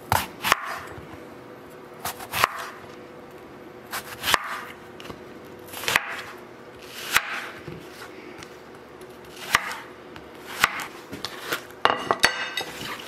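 A knife chops through an apple onto a wooden board.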